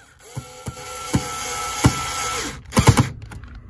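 A cordless drill whirs briefly as it drives a screw.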